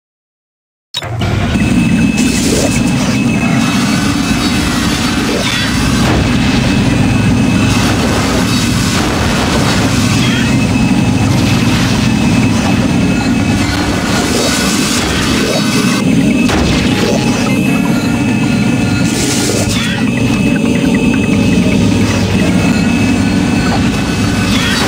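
A hovercraft engine hums steadily.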